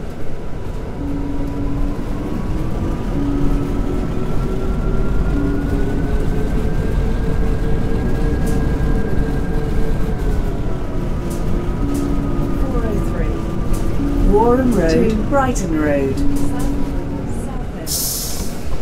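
A bus engine hums, rising in pitch as the bus speeds up and then dropping as it slows to a stop.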